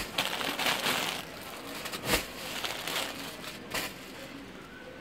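Plastic wrapping crinkles and rustles as cloth packets are handled.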